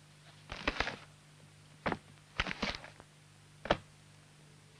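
A book slides and knocks on a desk.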